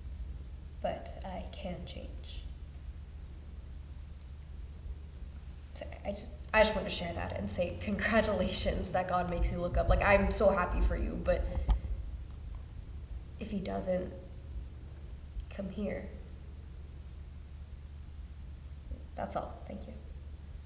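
A young woman speaks with feeling, close by, in a large echoing hall.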